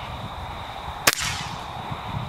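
An air rifle fires with a sharp crack.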